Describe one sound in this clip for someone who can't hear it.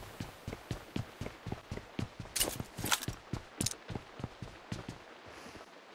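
Quick footsteps run over a hard floor.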